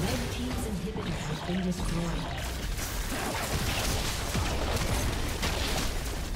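Magic blasts and weapon clashes crackle in a busy fight.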